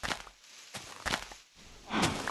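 Blocks break with soft, crunching pops.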